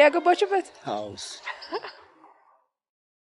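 A man asks a question in a calm voice.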